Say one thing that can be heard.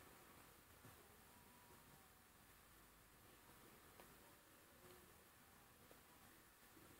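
A brush softly rasps through hair.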